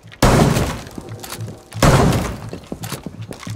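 Two loud blasts boom close by, echoing.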